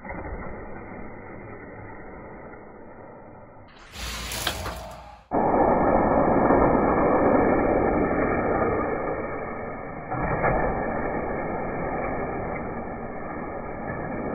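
Small toy cars roll and rattle down plastic tracks.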